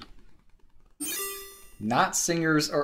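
A video game plays a short electronic jingle.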